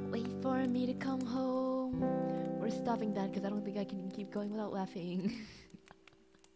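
A guitar plays chords.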